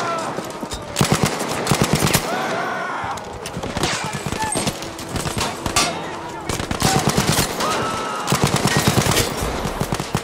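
A machine gun fires rapid bursts close by.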